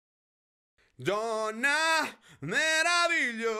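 A man sings into a close microphone in long held notes.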